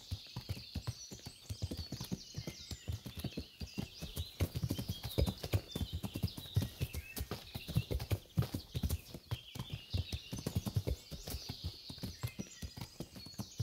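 A horse's hooves thud steadily on soft ground at a trot.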